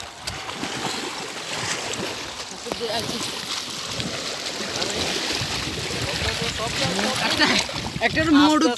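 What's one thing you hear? Shallow water flows and gurgles steadily.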